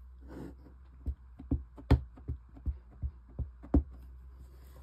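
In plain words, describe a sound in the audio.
A stamp taps several times on an ink pad.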